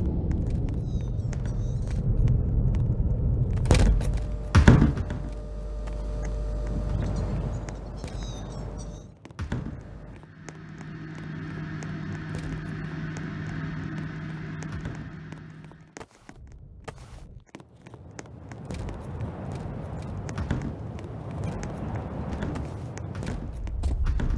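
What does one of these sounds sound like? Quick footsteps patter along a hard floor.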